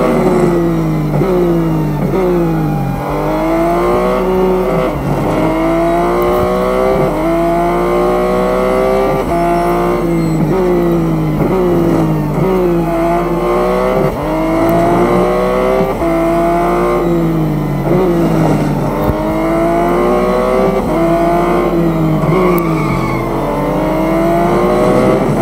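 A racing car engine roars loudly, rising in pitch as it speeds up and dropping with each gear change.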